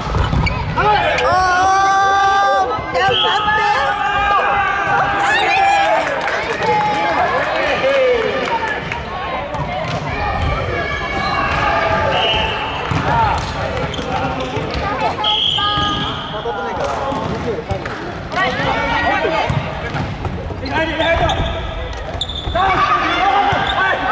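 A volleyball thumps as players hit the ball.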